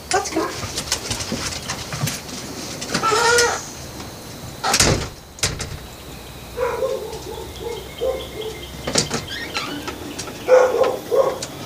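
A woman talks to a dog in a coaxing voice.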